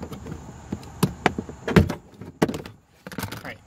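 A plastic trim panel clicks and snaps as it is pried loose.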